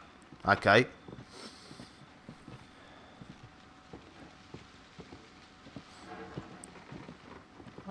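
Footsteps thud softly on wooden boards.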